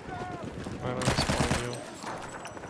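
A submachine gun fires a rapid burst in a video game.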